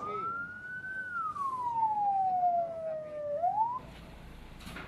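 A siren wails, falling and then rising in pitch.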